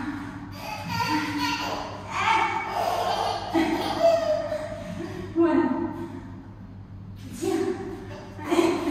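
A baby babbles and whines loudly nearby.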